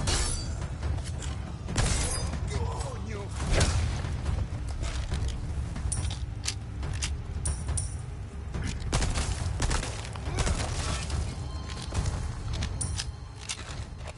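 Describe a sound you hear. Heavy blows and thuds land in a scuffle.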